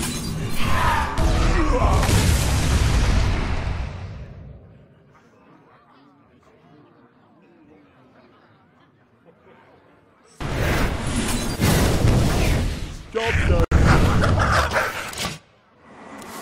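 Video game sound effects crash and whoosh in loud bursts.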